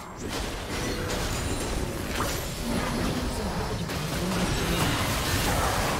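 Video game spell effects crackle and burst rapidly.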